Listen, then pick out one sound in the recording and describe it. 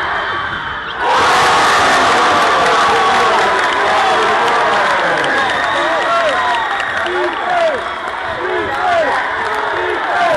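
A crowd cheers loudly all at once.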